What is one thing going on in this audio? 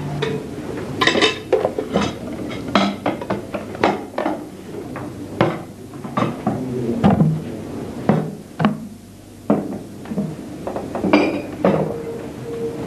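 Glasses and a tray clink and rattle close by.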